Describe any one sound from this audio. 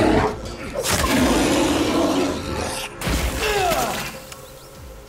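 Heavy blows and slashes land in a fierce fight.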